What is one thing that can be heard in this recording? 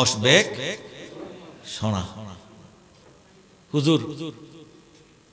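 An elderly man preaches with fervour into a microphone, heard through loudspeakers in bursts.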